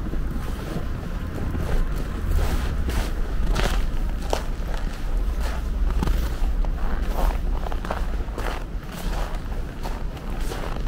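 Footsteps crunch on packed snow.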